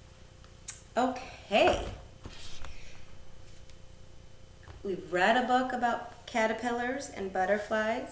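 A woman speaks animatedly, close by.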